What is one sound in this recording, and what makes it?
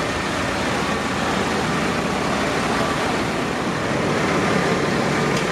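A diesel farm tractor drives past.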